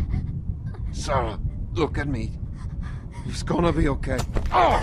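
A man speaks softly and pleadingly.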